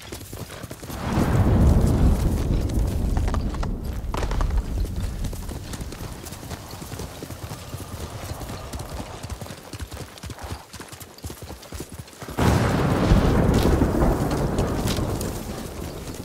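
Wind gusts past in strong rushes.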